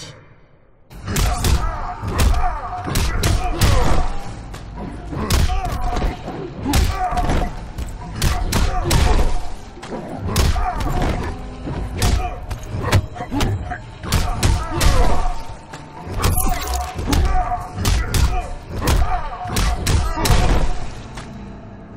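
Heavy punches and kicks land with hard, rapid thuds and smacks.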